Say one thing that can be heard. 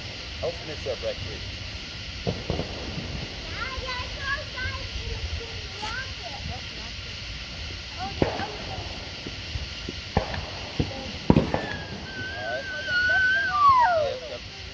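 Young people talk and call out to each other outdoors.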